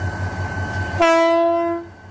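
A train horn blares loudly, then cuts off.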